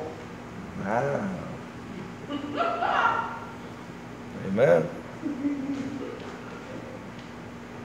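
A man preaches with animation in an echoing hall.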